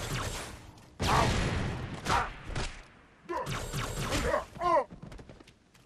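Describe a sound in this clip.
A creature roars and growls loudly.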